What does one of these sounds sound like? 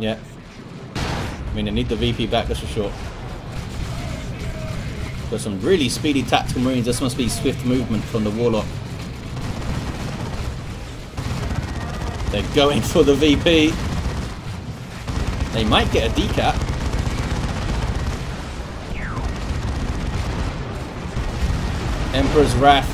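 Weapons fire and blast in a noisy battle.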